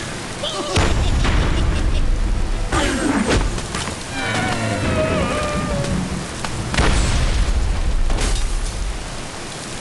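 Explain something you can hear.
Stone and wood crash and tumble with loud bursts.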